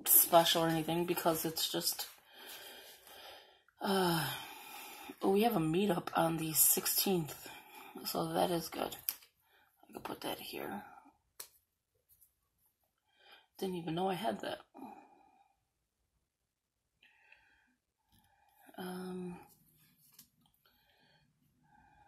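Sticker sheets rustle and crinkle as hands handle them.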